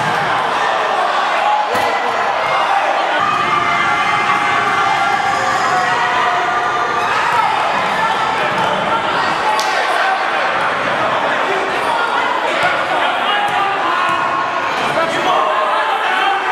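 Many people chatter in a large echoing gym.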